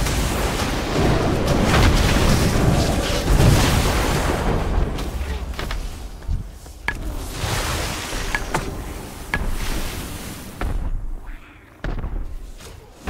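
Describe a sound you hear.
Spell effects and combat sounds crash and whoosh in a game.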